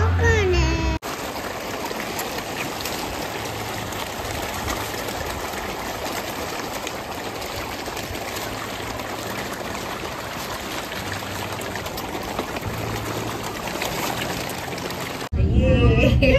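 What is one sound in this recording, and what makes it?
Fish splash and churn at the surface of a pond.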